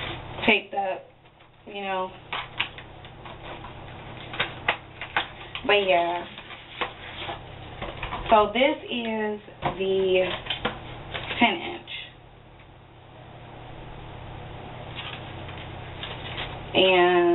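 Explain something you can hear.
Packaging crinkles in a woman's hands.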